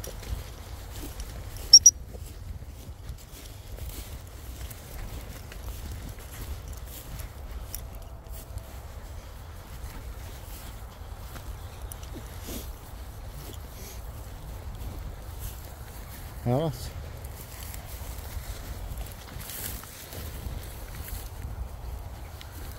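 A dog rustles through long grass.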